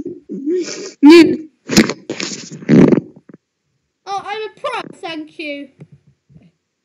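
A young boy talks excitedly close to a microphone.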